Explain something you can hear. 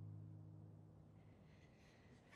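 A young woman strums an acoustic guitar softly.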